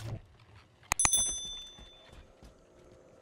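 A short bright chime rings out and fades.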